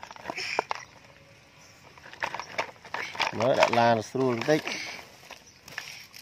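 A toy digger scrapes and scoops through loose gravel.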